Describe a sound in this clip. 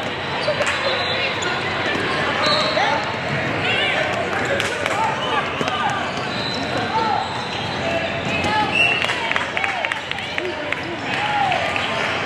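Basketball shoes squeak sharply on a gym floor.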